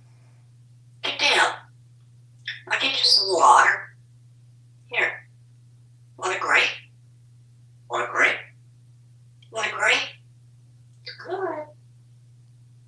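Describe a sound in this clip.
A parrot squawks and chatters in short loud bursts close by.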